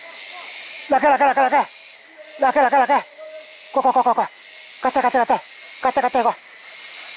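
Ground birds call out loudly in short bursts nearby.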